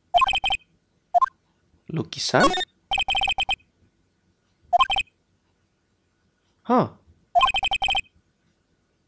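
Short electronic beeps chatter in quick bursts.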